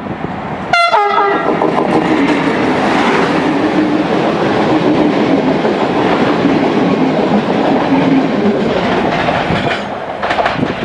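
A passing train roars loudly and rattles along the rails.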